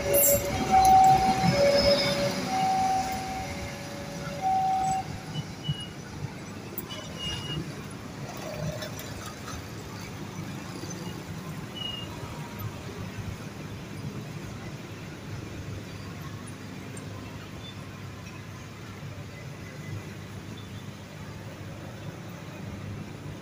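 An electric train rumbles along the tracks and slowly fades into the distance.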